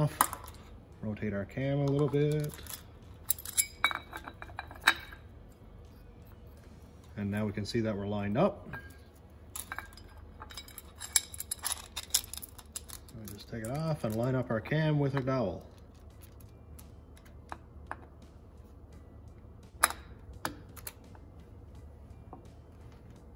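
A metal chain clinks and rattles against gears.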